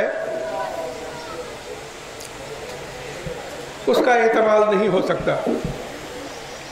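An elderly man speaks loudly and with feeling into a microphone, heard through loudspeakers.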